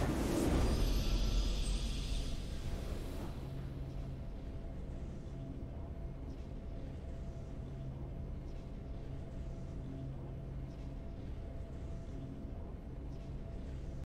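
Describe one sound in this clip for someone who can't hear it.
A triumphant fanfare plays and fades.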